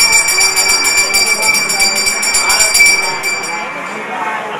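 A hand bell rings rapidly and steadily, then stops.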